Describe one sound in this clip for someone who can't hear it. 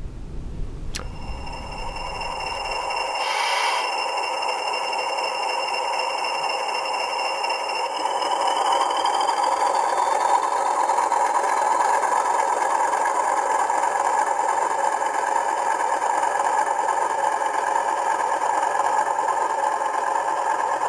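A model diesel locomotive's engine drones steadily.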